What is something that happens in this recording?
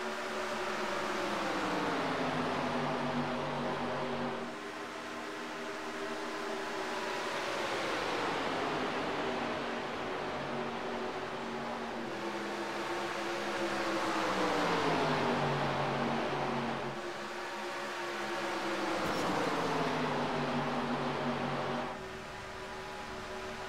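Race car engines roar loudly at high speed, rising and falling in pitch as the cars pass by.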